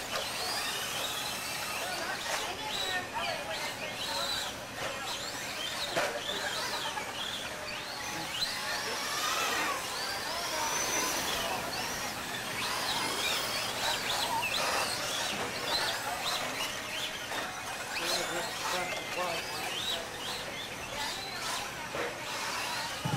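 Men chat in the background.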